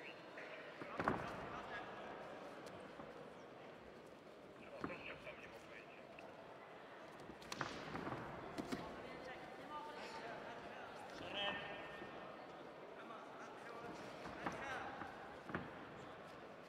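Wrestlers' feet thud and scuff on a mat.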